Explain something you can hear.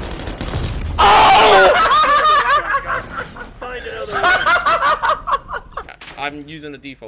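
A young man shouts with animation close to a microphone.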